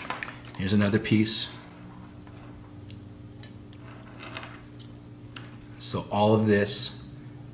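Metal chain links clink softly as a pendant is handled.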